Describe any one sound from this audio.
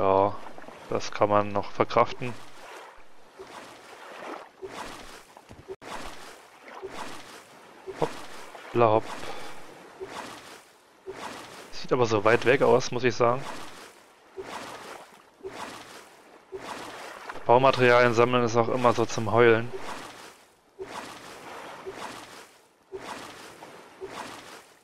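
A paddle splashes in water with steady, even strokes.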